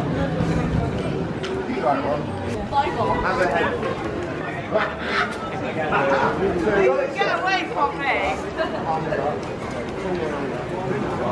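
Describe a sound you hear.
Men and women talk and chatter nearby outdoors.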